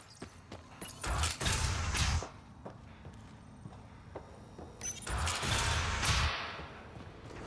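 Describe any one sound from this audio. A heavy metal door slides open with a loud whoosh.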